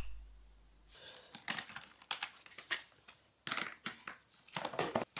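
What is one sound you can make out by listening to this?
Plastic cassettes clatter as they are lifted out.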